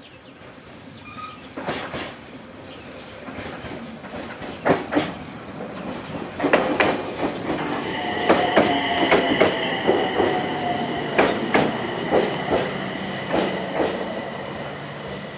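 A train rolls in closer, its wheels clacking over the rail joints.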